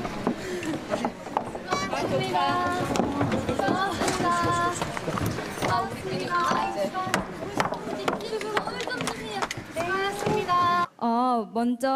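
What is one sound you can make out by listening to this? People chatter loudly in a noisy crowd.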